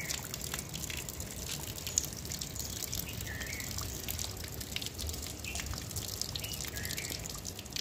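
Water runs from a tap and splashes onto wet ground.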